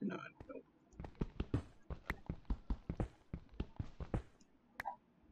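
A pickaxe taps rapidly on stone, cracking and crumbling it.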